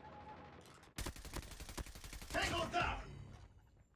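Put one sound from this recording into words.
A rapid burst of gunfire rattles loudly.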